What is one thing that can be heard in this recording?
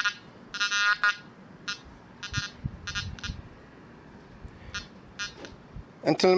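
A metal detector gives short, high electronic beeps.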